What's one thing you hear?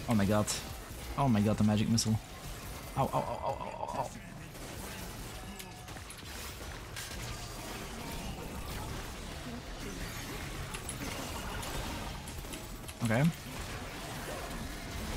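Fantasy spell effects crackle and whoosh in a video game.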